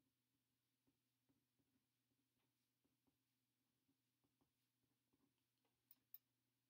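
A pen scratches and taps softly on paper.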